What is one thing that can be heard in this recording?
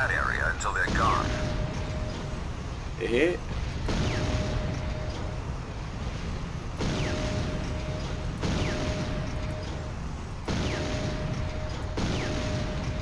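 A cannon fires in repeated booming shots.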